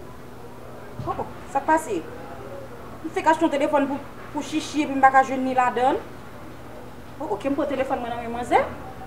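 A young woman talks on a phone nearby, speaking with feeling.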